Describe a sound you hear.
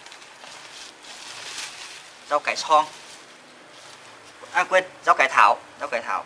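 Plastic bags rustle as vegetables are moved.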